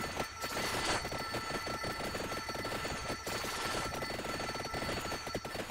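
Rapid electronic game hit sounds crackle and pop in quick succession.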